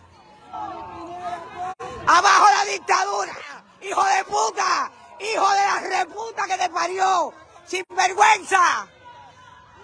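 A woman shouts angrily close by.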